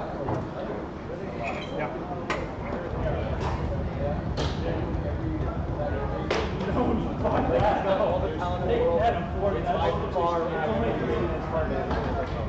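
Foosball rods clatter and spin in their handles.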